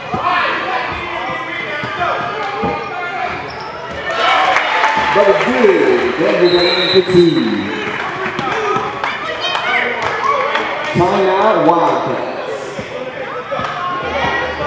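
Young boys shout and call out in a large echoing hall.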